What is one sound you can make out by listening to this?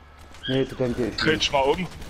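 Gunshots fire in a quick burst.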